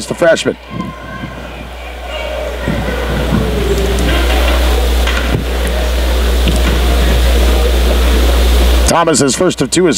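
A crowd murmurs and chatters in a large echoing gym.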